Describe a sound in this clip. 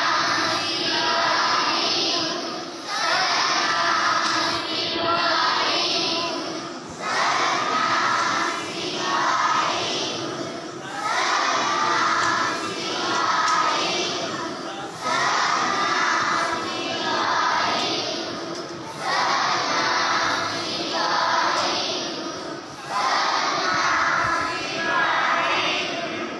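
A large group of children chants together in unison, in phrases that repeat every few seconds, in a large echoing hall.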